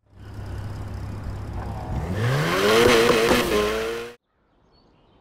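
A car engine revs up hard and roars.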